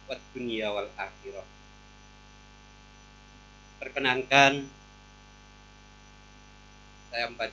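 An elderly man speaks slowly and solemnly into a microphone, with long pauses.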